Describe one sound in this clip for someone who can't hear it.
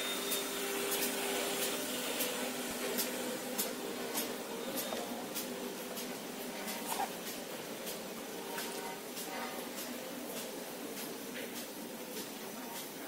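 Machinery clicks and knocks in a quick rhythm.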